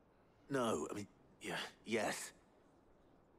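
A boy speaks hesitantly, close by.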